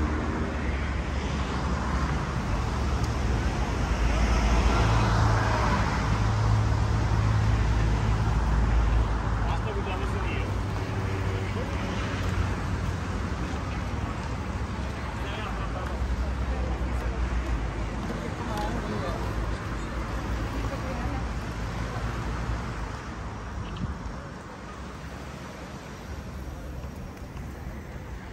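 Many voices of men and women chatter at a distance.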